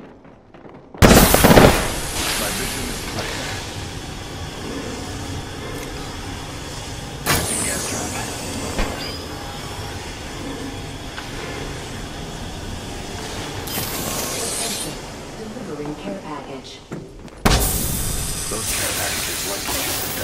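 Gas hisses loudly and steadily from canisters.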